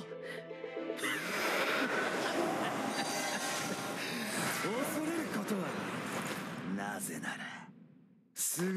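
A magical energy blast whooshes and roars.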